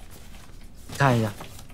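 A young man exclaims loudly.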